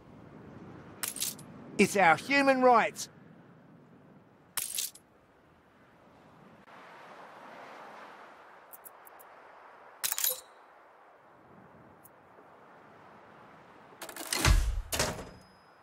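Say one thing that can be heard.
Short interface clicks and chimes sound now and then.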